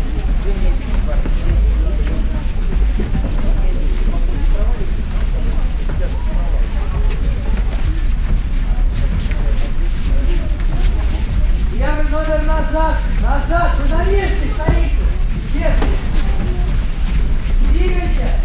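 A crowd of young people chatters throughout a large echoing hall.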